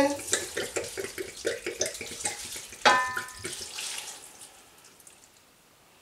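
Oil pours into a pot.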